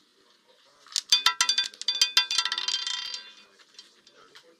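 A roulette ball rattles and clatters around a spinning wheel.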